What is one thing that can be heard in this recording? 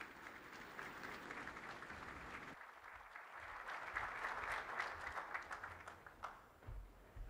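A large crowd claps and applauds in a big echoing hall.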